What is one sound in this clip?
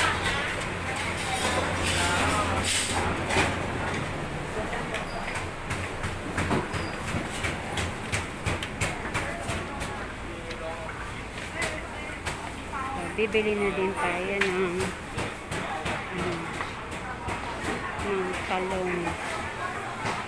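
Many people murmur and walk about in a busy market.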